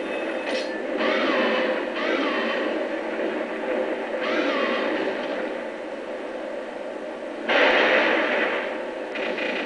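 A large winged creature screeches loudly, again and again.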